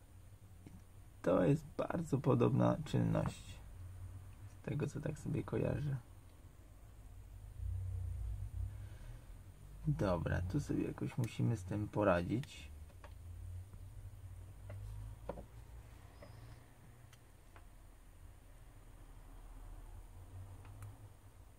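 Small plastic clips click softly as a phone casing is pried open with a metal tool.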